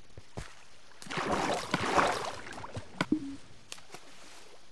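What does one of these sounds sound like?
Water rushes and splashes nearby.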